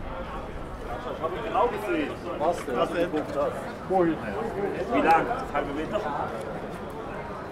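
Men and women chat close by outdoors.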